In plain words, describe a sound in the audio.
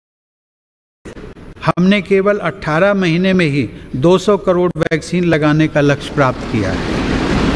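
An elderly man speaks slowly and formally through a microphone in a large echoing hall.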